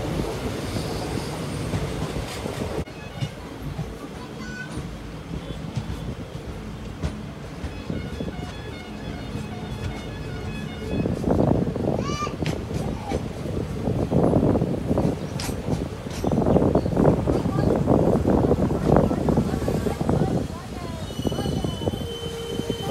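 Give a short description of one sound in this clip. A train rumbles and clatters along the rails.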